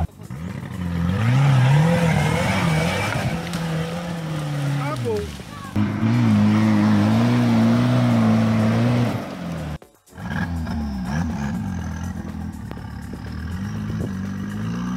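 An off-road vehicle engine revs hard, rising and falling.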